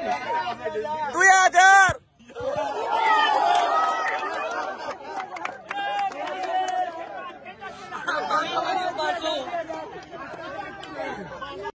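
A crowd of young men shouts and cheers loudly outdoors.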